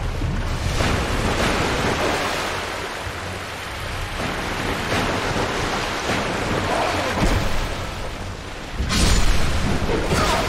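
A blade swings and strikes with heavy clanks.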